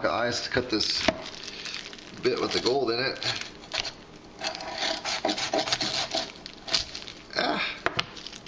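A knife scrapes and cuts against a hard surface.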